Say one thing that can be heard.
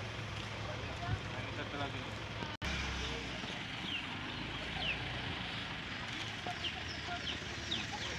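A crowd of men and women talks and murmurs outdoors.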